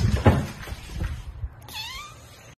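A cat scratches its claws on a rope post with a rough rasping.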